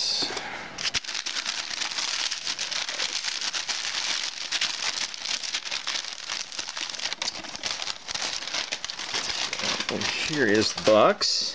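Paper crinkles and rustles close by.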